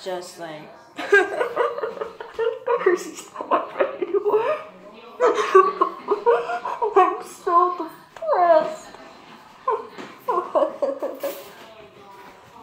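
A boy laughs behind his hands.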